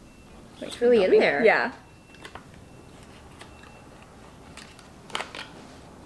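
Packaging rustles and clicks in hands.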